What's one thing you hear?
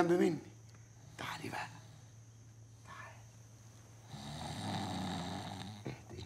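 A middle-aged man speaks with animation nearby.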